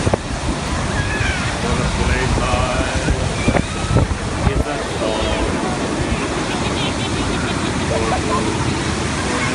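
Children shout and laugh excitedly nearby.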